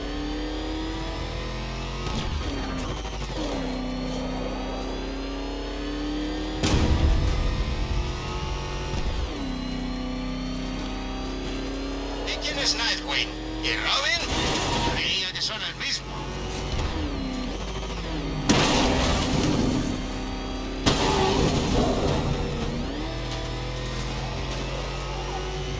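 A heavy vehicle's engine roars steadily, rising and falling in pitch.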